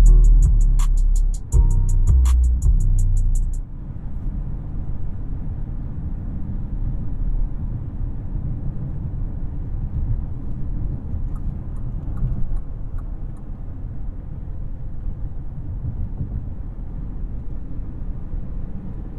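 A W12 luxury sedan's engine hums while cruising, heard from inside the cabin.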